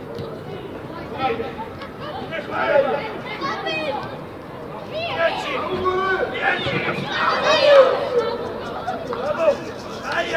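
Players shout and call to each other outdoors, some way off.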